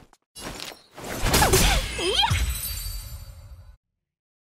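A bright slashing burst whooshes and crackles.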